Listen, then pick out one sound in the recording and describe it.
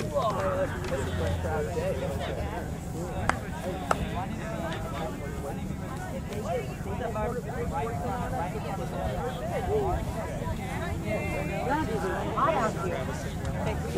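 A crowd of men and women talk and shout outdoors, some distance away.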